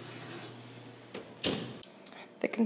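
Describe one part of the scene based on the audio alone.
An oven door clanks shut.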